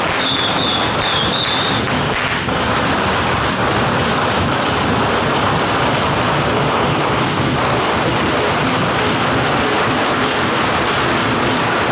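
Firecrackers crackle loudly and rapidly nearby.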